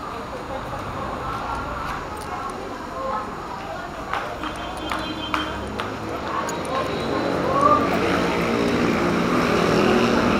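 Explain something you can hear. A crowd of people chatters nearby, growing louder.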